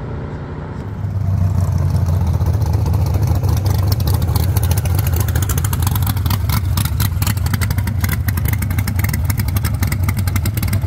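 A drag-built car's engine rumbles with a choppy, lumpy idle as it rolls past at low speed.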